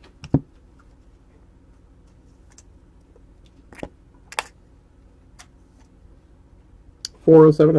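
Trading cards rustle and tap softly as a hand handles them.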